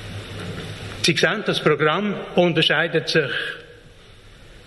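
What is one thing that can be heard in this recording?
An elderly man speaks calmly into a microphone in a large hall.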